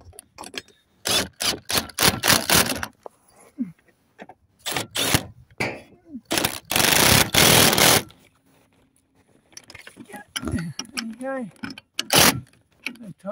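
A power drill with a wire brush grinds loudly against metal in short bursts.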